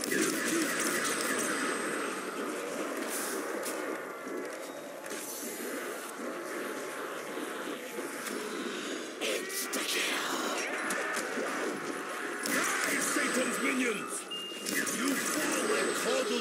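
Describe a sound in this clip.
Creatures burst apart with wet splattering bursts.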